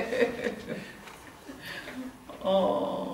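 A woman laughs heartily nearby.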